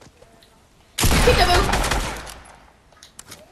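Gunshots blast nearby.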